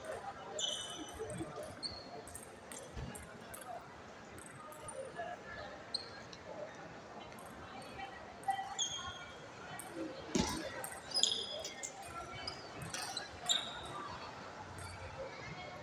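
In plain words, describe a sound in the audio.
Ping-pong balls click on tables and paddles in a large echoing hall.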